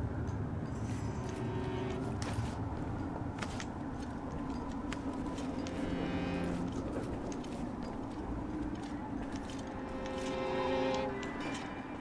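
A climber's hands scrape and grip on stone ledges.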